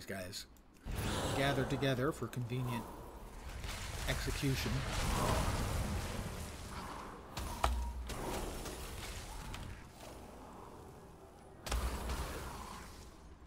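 Magic spells whoosh and explode in bursts.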